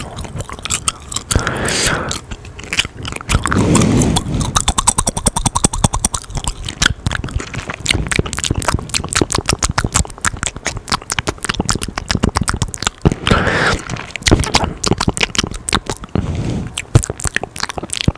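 A young man whispers very close to a microphone.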